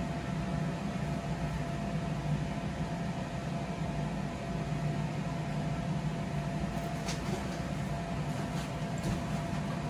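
A blower fan hums steadily, keeping an inflatable castle filled with air.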